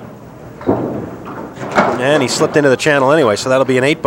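Bowling pins clatter as they are knocked down.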